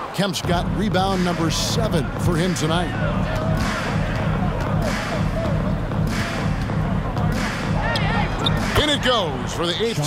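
Basketball shoes squeak sharply on a hardwood floor.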